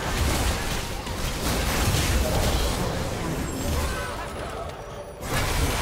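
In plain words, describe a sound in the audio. Game spell effects crackle and burst in quick succession.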